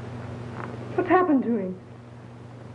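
A woman speaks briefly, close by.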